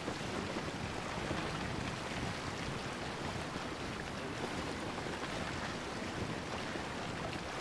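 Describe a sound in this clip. A sail flaps in the wind.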